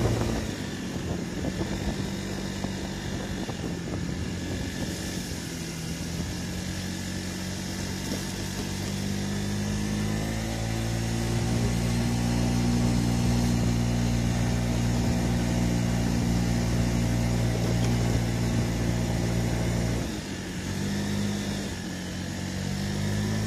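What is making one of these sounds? A scooter engine hums steadily, rising in pitch as it speeds up and dropping as it slows.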